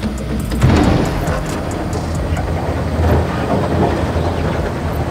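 A diesel excavator engine rumbles steadily.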